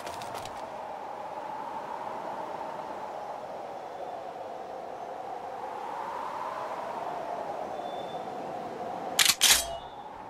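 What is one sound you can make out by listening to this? Sea waves wash and rumble steadily.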